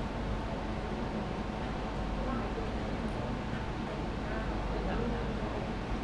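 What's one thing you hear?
A man speaks quietly and close by in a large room.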